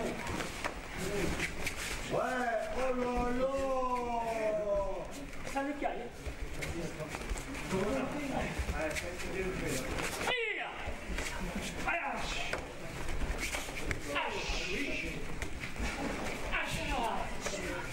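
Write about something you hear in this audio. A karate uniform snaps sharply as a man kicks.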